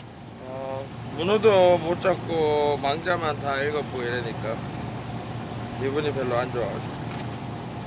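A young man speaks up close with animation.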